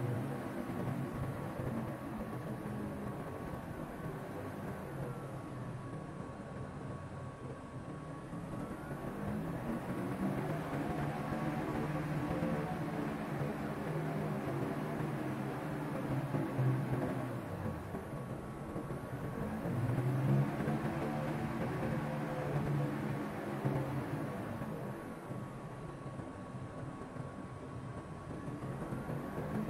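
A jet engine whines and rumbles steadily.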